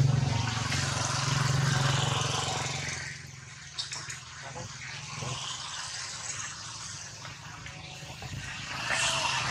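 A baby monkey suckles softly.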